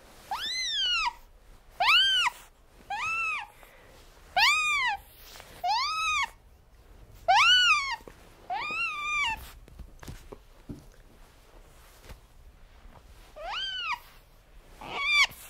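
Otters give repeated high, shrill chirping squeals.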